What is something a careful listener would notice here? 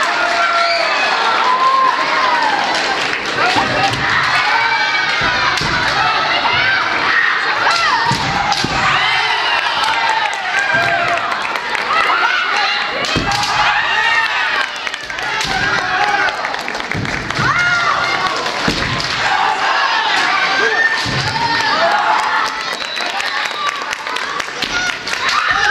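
Fighters let out loud, high shouts in a large echoing hall.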